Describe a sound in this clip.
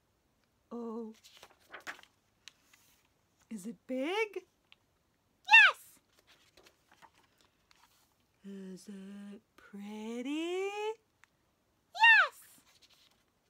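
A young woman reads aloud close up, in playful, changing character voices.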